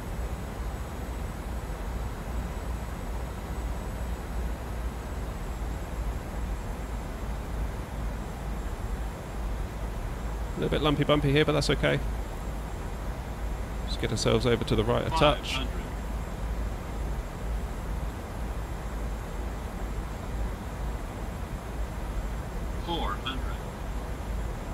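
Jet engines drone in a low, steady rumble.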